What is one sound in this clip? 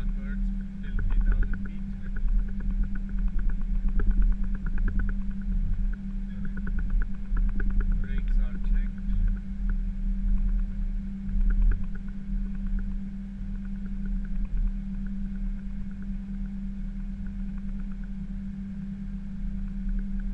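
Wheels rumble and thump over joints in the taxiway.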